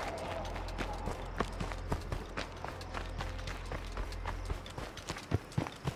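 Footsteps crunch on dry dirt as a character runs.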